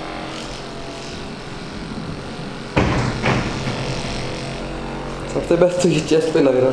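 A massage gun buzzes steadily.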